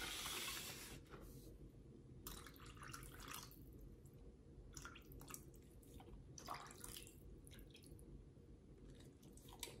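Plastic wrapping rustles and crinkles as a hand handles raw meat.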